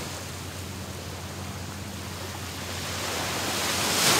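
Water splashes around a person wading out of the sea.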